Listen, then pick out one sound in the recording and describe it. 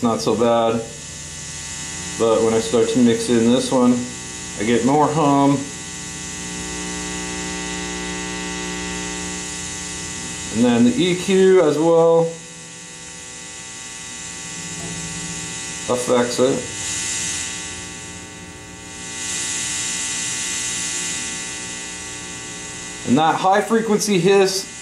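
Bass guitar strings ring out with long, sustained notes.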